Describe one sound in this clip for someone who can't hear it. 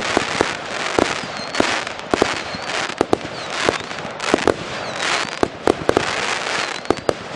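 Firework rockets whistle upward.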